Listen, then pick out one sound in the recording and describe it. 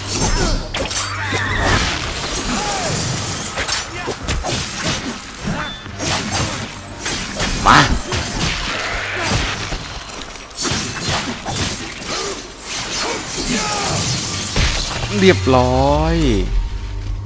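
Blades slash and clang in a fast fight.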